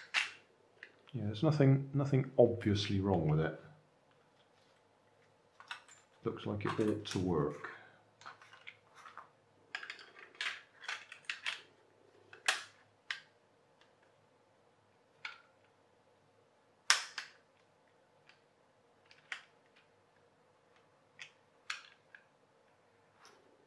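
Plastic parts of a toy boat click and knock together as they are handled.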